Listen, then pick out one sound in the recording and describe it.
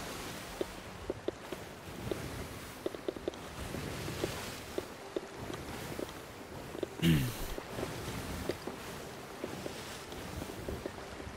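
Wooden ship timbers creak and knock.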